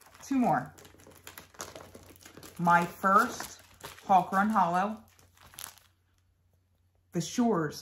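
Paper pages rustle and flap.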